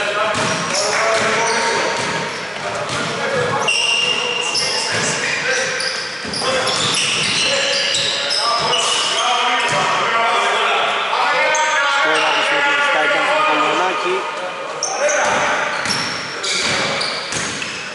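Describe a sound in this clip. Sneakers squeak on a hardwood court in an echoing gym.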